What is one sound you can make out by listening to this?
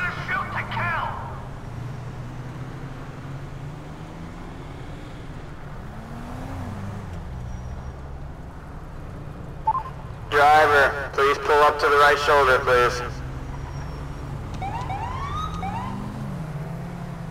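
A police siren wails in short bursts.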